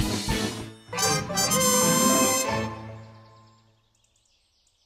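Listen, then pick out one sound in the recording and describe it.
A cheerful victory jingle plays and rings out.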